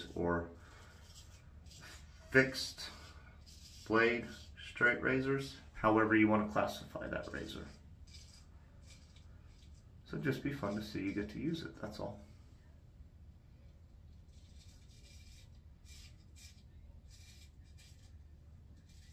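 A razor scrapes over stubble.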